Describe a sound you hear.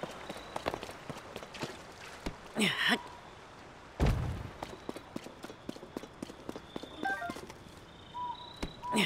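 Footsteps crunch over grass and rocks.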